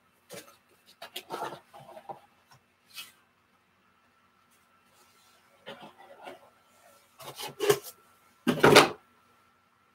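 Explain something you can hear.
A box is set down on a table with a knock.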